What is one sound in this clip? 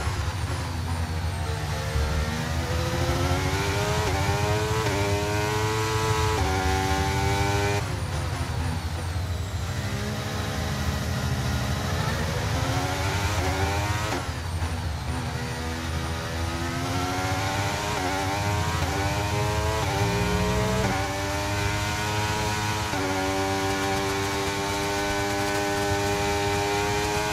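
A racing car engine screams loudly, rising in pitch through each gear and dropping sharply at every shift.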